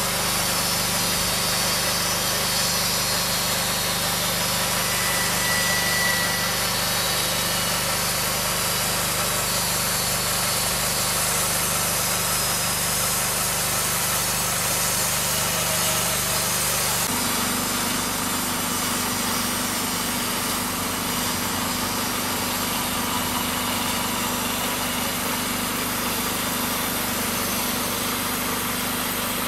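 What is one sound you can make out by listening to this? A band saw blade whines as it cuts through a log.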